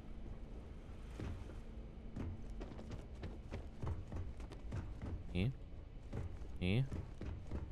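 Footsteps tap steadily on a hard metal floor.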